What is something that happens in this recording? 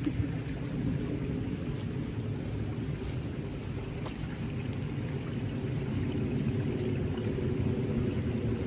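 Footsteps crunch through dry leaves on the ground.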